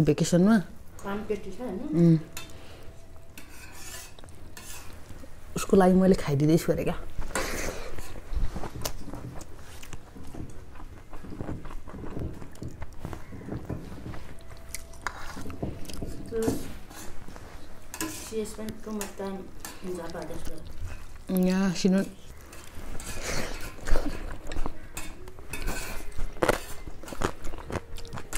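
A man chews and smacks his lips while eating.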